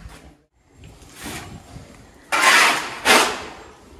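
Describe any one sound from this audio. A shovel scrapes and scoops dry feed into a sack.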